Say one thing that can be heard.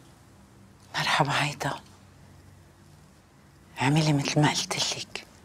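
A middle-aged woman speaks quietly into a phone.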